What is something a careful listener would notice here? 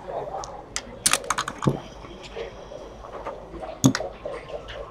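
A button on a clock is pressed with a click.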